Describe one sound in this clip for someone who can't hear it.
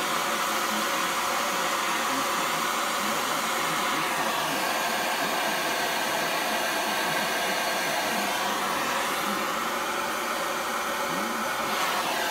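A gas torch flame roars steadily.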